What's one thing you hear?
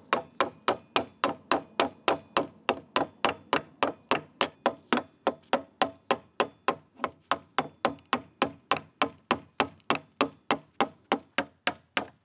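A mallet knocks sharply on a chisel handle in a quick, steady rhythm.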